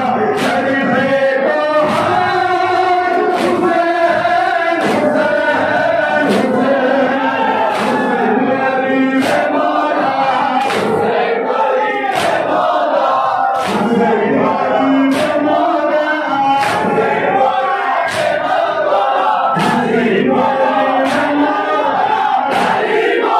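A crowd of men beats their chests in a steady rhythm.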